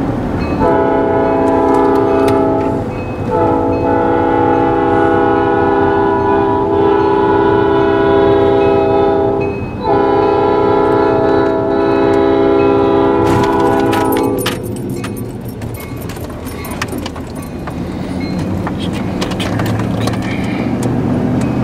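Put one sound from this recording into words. A car drives along with steady road noise.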